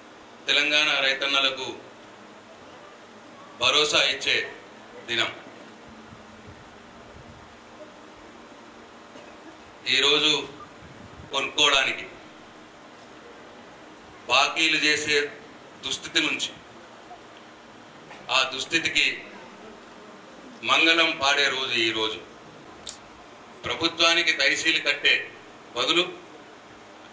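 A middle-aged man speaks through a microphone and loudspeakers in bursts, with long pauses.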